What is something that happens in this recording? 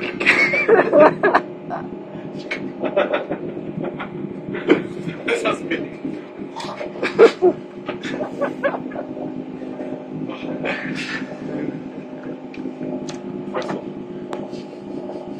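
A train hums steadily as it rolls along.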